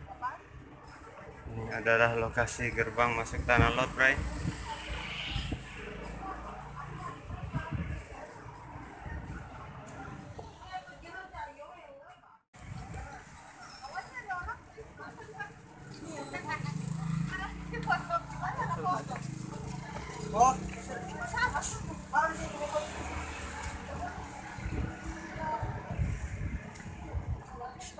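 A crowd of adults chatters nearby outdoors.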